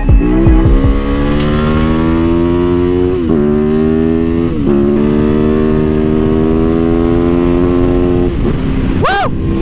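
A motorcycle engine revs hard and shifts up through the gears as the bike speeds along.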